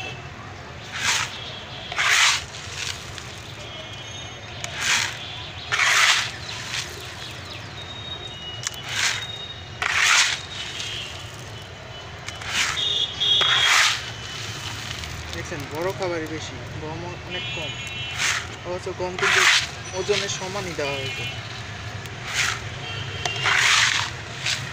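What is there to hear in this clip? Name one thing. Dry grain pours and rattles from a scoop in repeated bursts.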